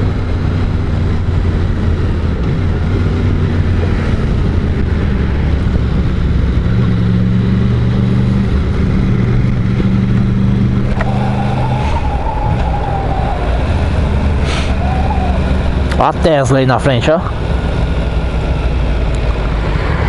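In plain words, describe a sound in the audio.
Wind rushes past loudly as the motorcycle rides along.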